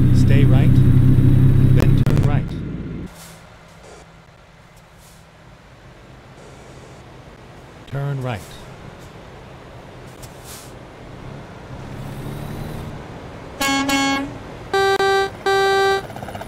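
A truck engine rumbles steadily, loud at first and then quieter.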